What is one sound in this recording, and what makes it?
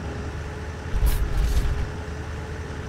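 A vehicle bumps into another with a dull thud.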